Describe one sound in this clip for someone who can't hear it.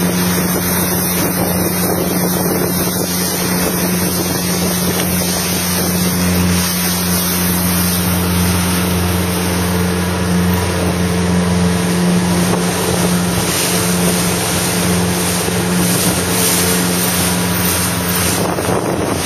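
Wind blows hard across the microphone outdoors.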